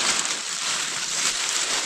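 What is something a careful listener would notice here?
Leaves rustle as a hand pulls at a bush.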